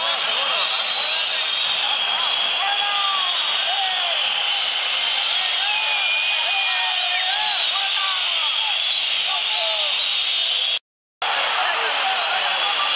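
A large stadium crowd roars, whistles and chants in a vast open space.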